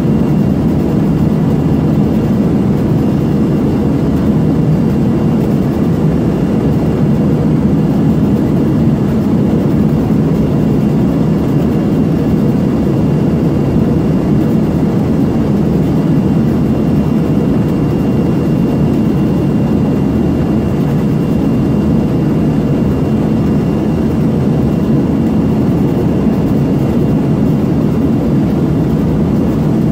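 Rear-mounted turbofan engines of a regional jet roar in a deep, steady drone, heard from inside the cabin in flight.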